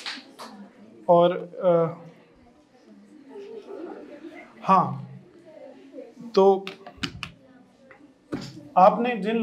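A young man speaks with animation into a microphone, heard through loudspeakers in a room.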